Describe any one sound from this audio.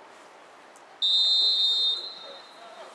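A referee's whistle blows a long, shrill blast.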